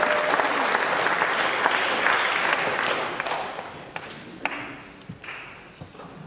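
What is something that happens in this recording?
An audience applauds in a large echoing hall, then the clapping fades away.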